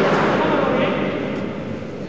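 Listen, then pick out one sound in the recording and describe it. A ball is bounced on the ground before a serve.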